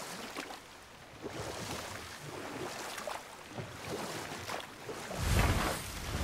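Oars splash and water laps against a rowing boat.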